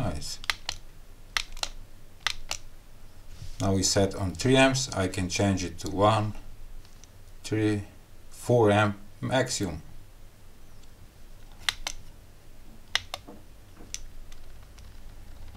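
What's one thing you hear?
A small rotary knob clicks softly as it is turned.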